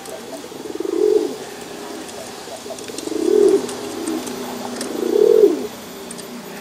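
A pigeon coos in low, rolling bursts.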